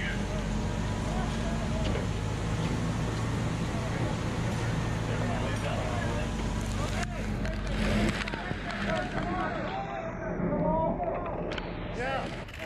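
A house fire roars and crackles loudly nearby.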